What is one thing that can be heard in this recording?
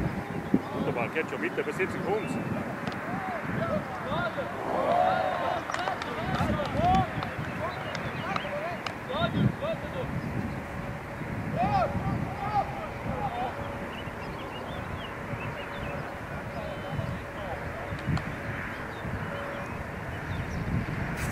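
Teenage boys shout to each other far off across an open outdoor pitch.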